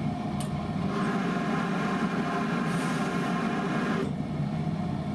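A steam iron hisses as it presses fabric.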